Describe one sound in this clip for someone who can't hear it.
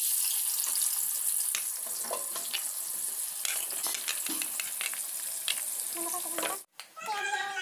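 Onions sizzle and crackle in hot oil.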